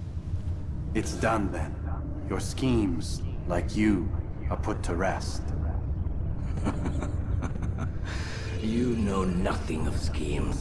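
A man speaks in a low, strained voice, close by.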